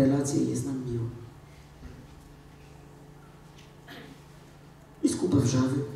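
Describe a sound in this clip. A woman speaks with animation into a microphone in a large echoing hall.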